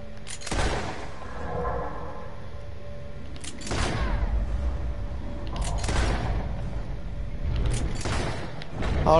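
Gunshots ring out one after another, with echoes.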